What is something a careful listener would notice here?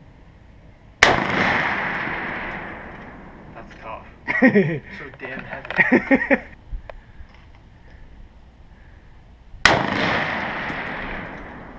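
A rifle fires loud shots that echo outdoors.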